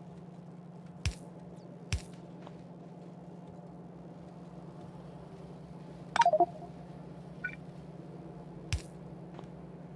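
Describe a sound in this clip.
Short clicks and thuds sound now and then as a game's pieces are placed and removed.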